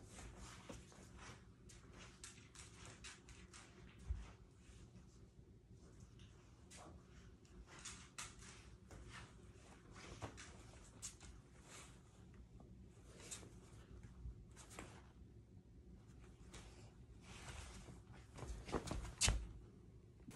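Bare feet step and thump on a wooden floor.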